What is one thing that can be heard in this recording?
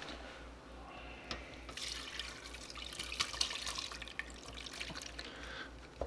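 Liquid and food pour from a pan into a metal pot.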